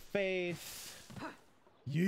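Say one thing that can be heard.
A wooden crate smashes apart.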